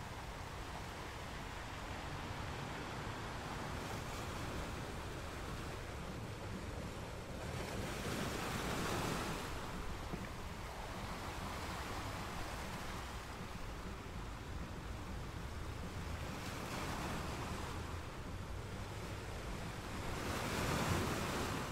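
Water washes and swirls over rocks.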